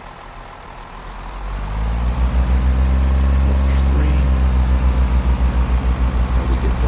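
A train engine roars louder as the train starts to pull away.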